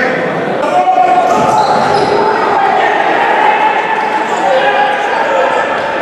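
Sports shoes squeak on a hard indoor floor.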